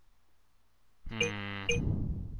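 A brief musical jingle plays for a completed task.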